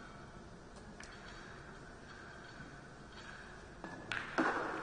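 Billiard balls click softly against each other as they are placed on the table.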